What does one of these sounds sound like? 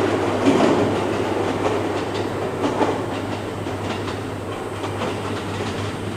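A train rumbles along the tracks, moving away.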